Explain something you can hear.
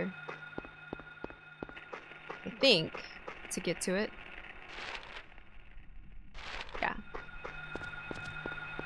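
Footsteps tap steadily on the ground.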